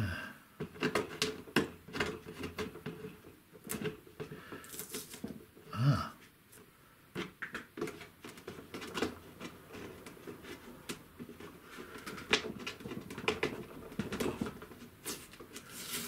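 Paper rustles as a hand pats and rubs a sheet on a board.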